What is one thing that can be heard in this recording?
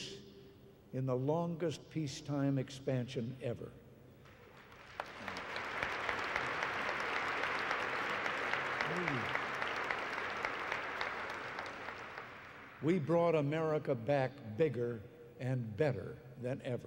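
An elderly man speaks warmly into a microphone, delivering a speech.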